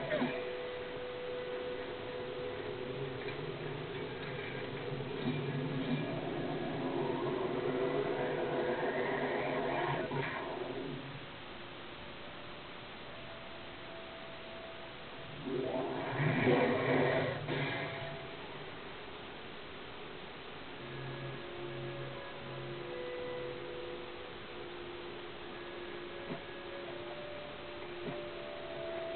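Synthesised music plays steadily through a small speaker.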